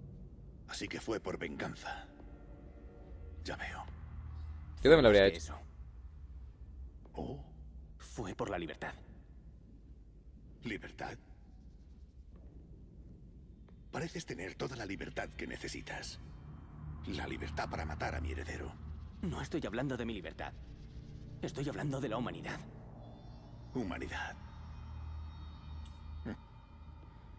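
An older man speaks in a deep, calm, menacing voice.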